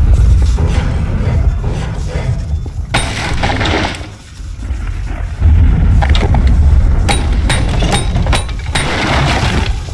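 Wooden crates crack and splinter under heavy blows from a metal bar.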